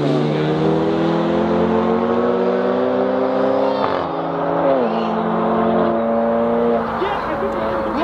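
Car engines roar as they accelerate away into the distance.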